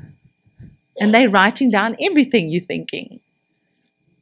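A middle-aged woman speaks with animation into a microphone.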